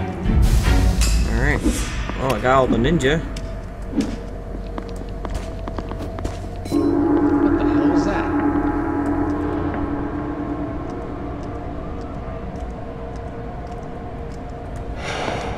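Soft game music plays throughout.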